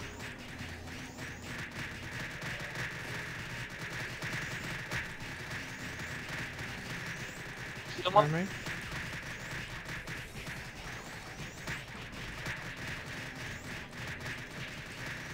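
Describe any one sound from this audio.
Magic spell effects crackle and whoosh in a game.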